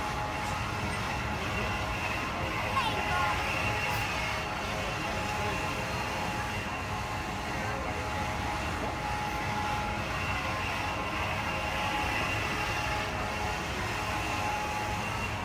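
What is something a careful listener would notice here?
A fairground ride's motor hums steadily as it spins.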